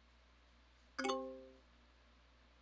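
A short chime rings out.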